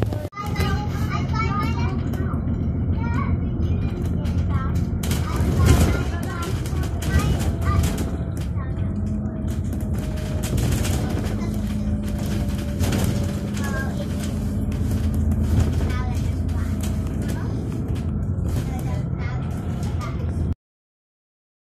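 A bus engine rumbles steadily while the bus drives along a road.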